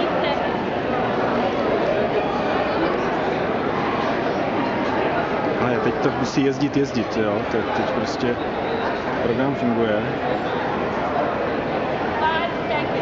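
A crowd of people chatter nearby in a large echoing hall.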